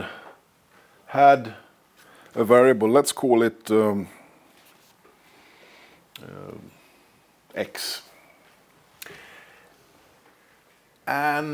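A man speaks calmly in a room with a slight echo, pausing between phrases.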